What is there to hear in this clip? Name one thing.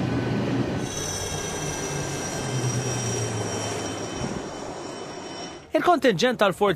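Propeller aircraft engines drone overhead.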